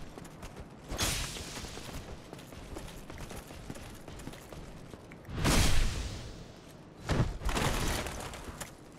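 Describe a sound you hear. Swords clash with loud metallic blows.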